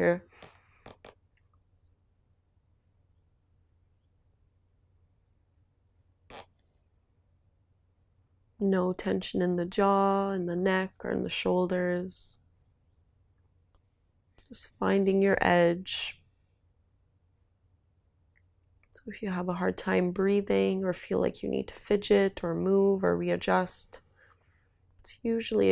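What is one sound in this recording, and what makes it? A young woman speaks calmly and slowly, close to a microphone, with long pauses.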